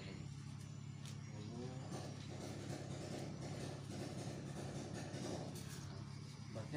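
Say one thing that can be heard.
Playing cards slap down on a hard floor.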